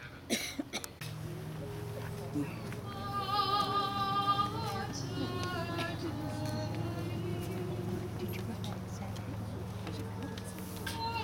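Singing with music plays over loudspeakers in the distance.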